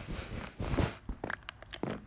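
Blocks crack and break with quick, dry clicks.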